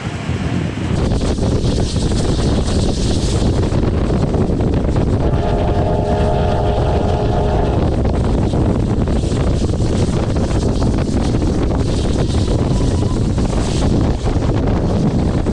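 A steam locomotive chugs steadily and loudly close by.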